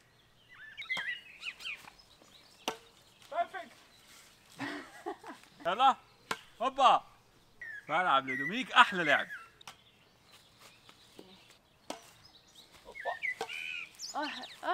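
A racket hits a shuttlecock with a light tap.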